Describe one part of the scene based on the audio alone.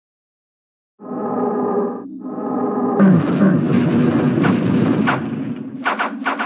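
Dark game music plays.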